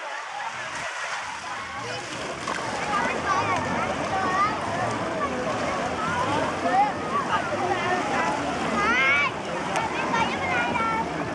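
Water splashes gently around people wading.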